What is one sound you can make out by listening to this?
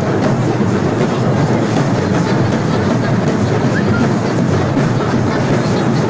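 A crowd of men and women talks and shouts at once, close by.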